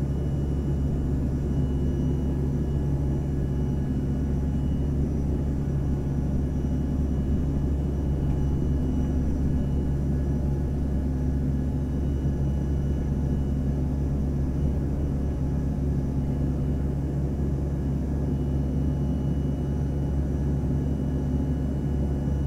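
Jet engines roar with a steady low drone inside an airplane cabin.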